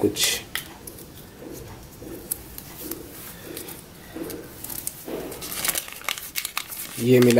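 A paper wrapper crinkles and rustles as it is unfolded.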